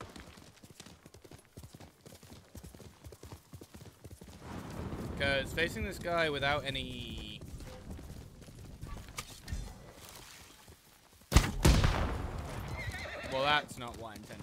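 A horse gallops, hooves thudding on soft ground.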